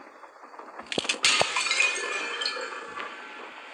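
Glass cracks and shatters sharply.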